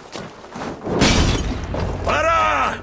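A wooden gate bursts apart with a loud explosion.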